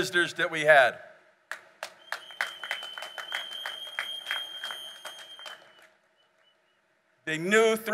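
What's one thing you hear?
An elderly man speaks calmly into a microphone over loudspeakers.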